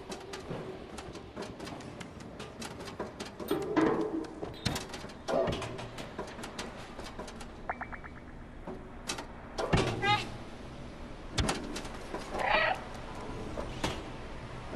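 Small paws patter lightly across a metal roof.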